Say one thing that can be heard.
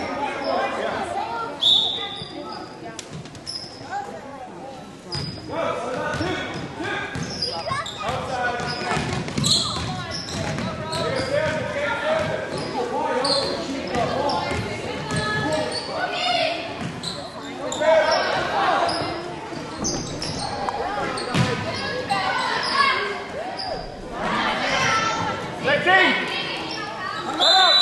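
Spectators talk and cheer loudly nearby in an echoing gym.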